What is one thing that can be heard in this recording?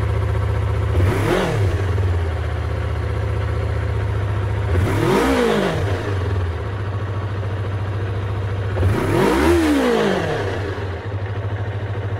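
A motorcycle engine revs up sharply and falls back.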